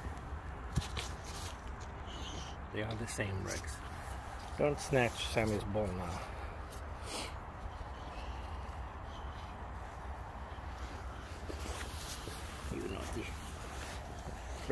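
Dry leaves rustle as dogs nose through them.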